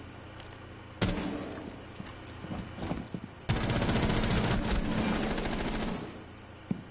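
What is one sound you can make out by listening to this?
Gunfire rattles in rapid bursts close by.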